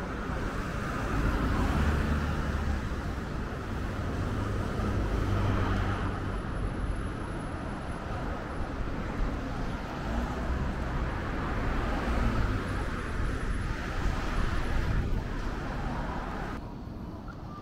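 Cars drive along a street nearby.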